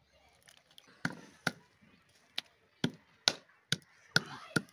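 A wooden pestle thumps sharply on a stone slab.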